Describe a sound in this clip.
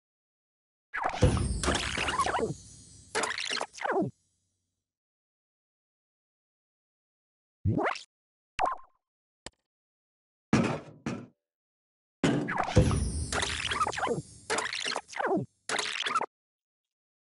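A game's rewind effect plays a loud, warbling whoosh.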